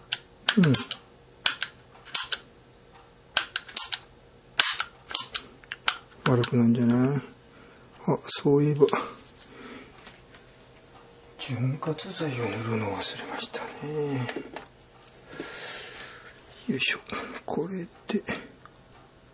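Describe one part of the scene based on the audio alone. Metal parts click and clack as they are handled close by.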